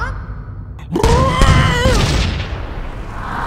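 A cartoon creature screams loudly in a high, strained voice.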